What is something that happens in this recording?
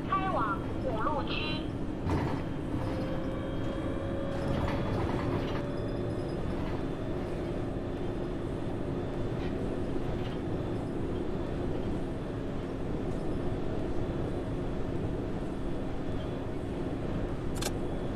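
A bus engine hums steadily while driving.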